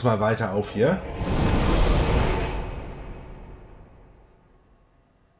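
A deep whooshing rush swells and slowly fades.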